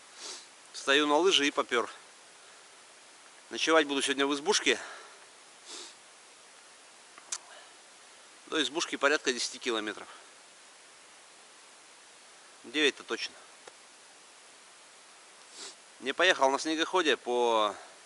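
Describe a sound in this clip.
A man speaks calmly and close by, in short phrases with pauses, outdoors in quiet.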